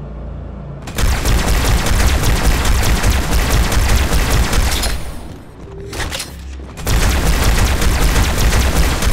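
Energy weapons fire in rapid, loud bursts.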